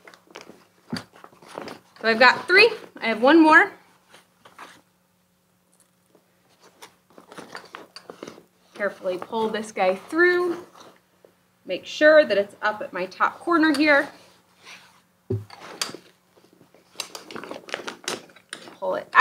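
Crinkly fabric rustles and crackles as it is handled.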